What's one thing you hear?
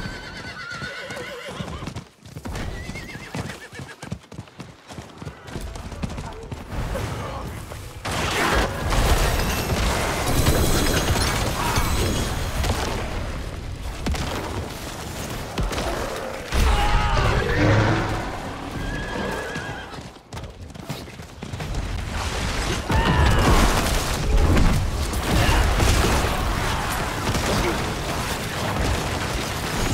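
Game combat effects crash and whoosh with magic blasts and impacts.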